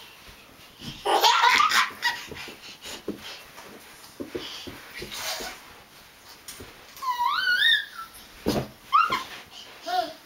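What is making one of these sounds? A toddler girl squeals and shrieks excitedly close by.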